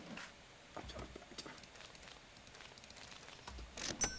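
A cash register beeps.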